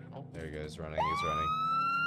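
A police siren starts up and rises in pitch.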